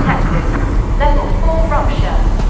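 A warning alarm beeps from a control panel.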